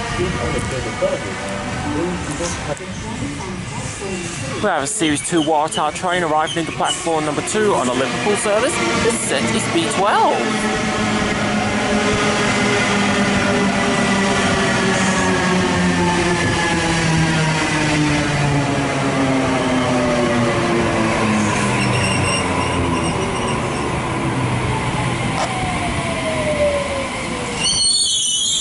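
An electric train's motors whine and hum, falling in pitch as it slows to a stop.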